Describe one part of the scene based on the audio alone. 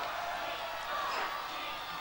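A man sings loudly.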